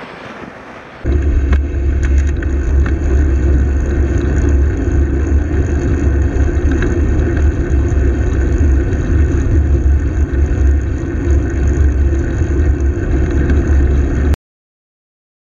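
Strong wind rumbles and buffets loudly while riding along a road.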